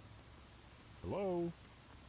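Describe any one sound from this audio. A young man speaks briefly and calmly into a microphone.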